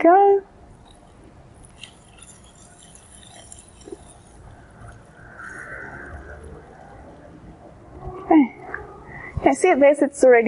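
Liquid pours into a metal vessel.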